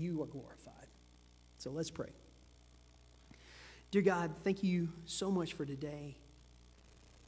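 A man speaks calmly into a microphone in a large echoing hall.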